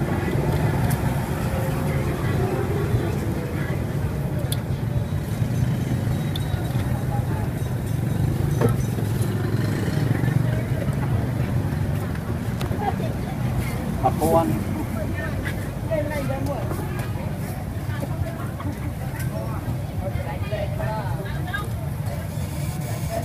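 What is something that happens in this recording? Oil sizzles and bubbles steadily in a frying pan.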